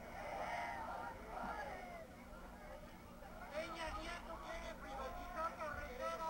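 A woman speaks through a microphone over loudspeakers outdoors.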